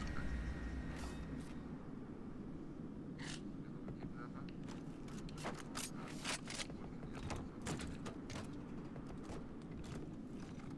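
Footsteps clack on a metal floor.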